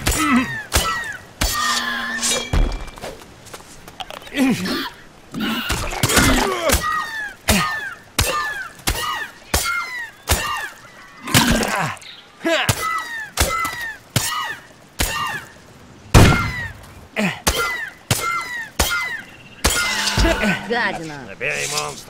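Swords clash again and again with sharp, ringing metal strikes.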